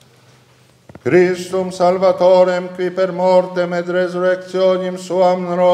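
An elderly man chants a prayer aloud, heard through a microphone in an echoing room.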